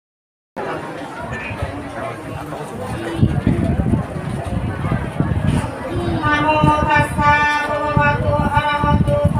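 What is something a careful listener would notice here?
A woman speaks into a microphone over loudspeakers, with animation.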